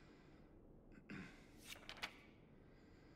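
Paper rustles as a sheet is turned over.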